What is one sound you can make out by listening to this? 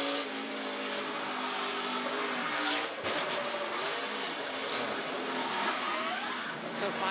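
A race car engine roars loudly at high revs, its pitch shifting as the car changes speed.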